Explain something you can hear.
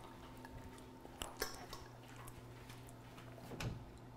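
A young man gulps water from a glass.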